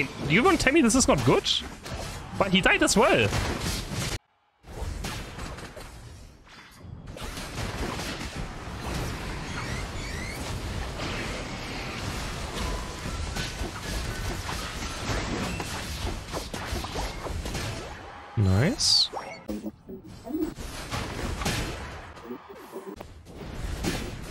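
Game attacks whoosh and blast with bursts of noise.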